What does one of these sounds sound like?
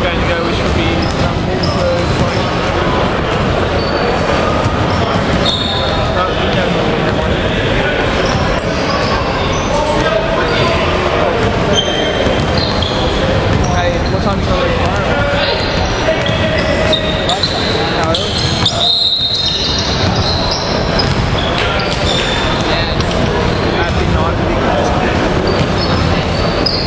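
Young men shout and call out in an echoing gym.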